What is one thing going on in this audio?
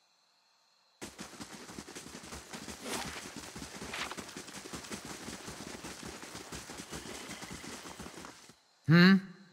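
Footsteps crunch steadily over rough ground.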